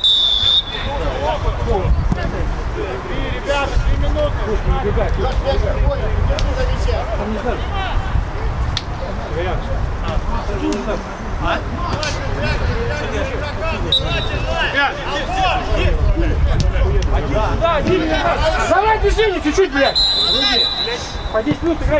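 Men shout and call out outdoors.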